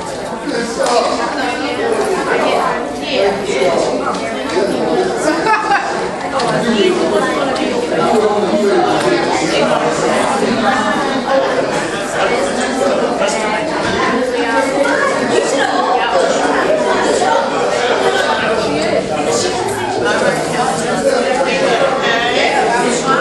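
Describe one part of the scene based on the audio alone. Men and women chatter together in a large echoing hall.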